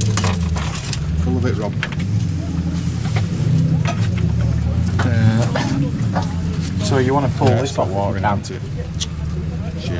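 A plastic air filter cover scrapes and clicks as hands twist it.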